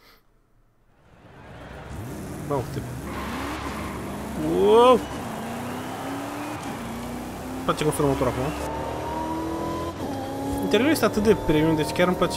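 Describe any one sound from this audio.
A car engine roars and revs up and down as it accelerates.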